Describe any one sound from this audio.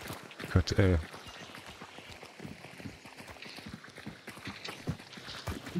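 Footsteps tread steadily over soft, muddy ground.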